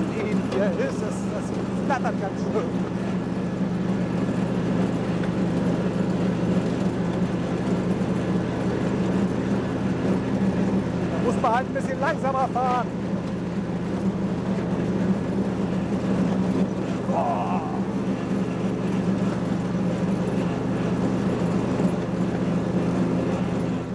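A ride-on mower engine drones steadily close by.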